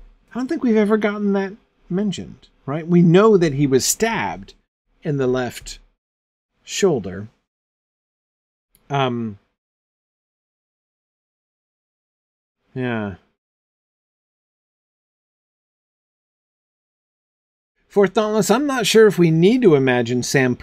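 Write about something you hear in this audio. A middle-aged man speaks thoughtfully and closely into a microphone, with long pauses.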